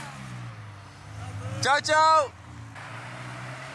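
A sports car roars past, accelerating hard.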